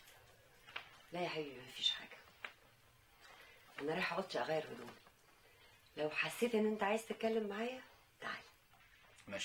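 A woman speaks calmly and firmly.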